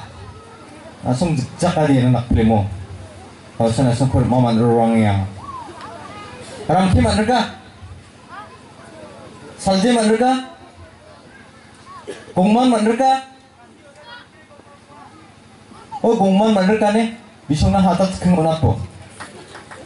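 A boy recites in bursts through a microphone, with pauses between the phrases.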